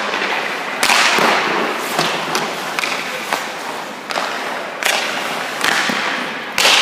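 Ice skates scrape and carve sharply across ice in a large echoing rink.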